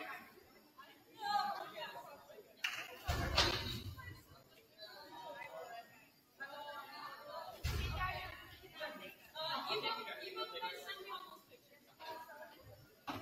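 Young women talk and call out to each other, heard from afar in a large echoing hall.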